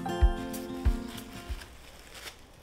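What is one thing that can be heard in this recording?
Plastic wrap crinkles as it is stretched over a bowl.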